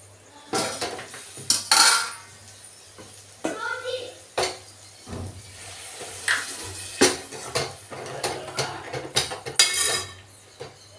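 A spoon scrapes and clatters against a metal pan.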